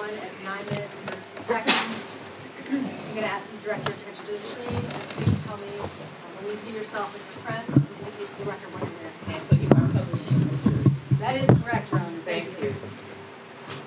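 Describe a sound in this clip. A young man speaks quietly into a microphone.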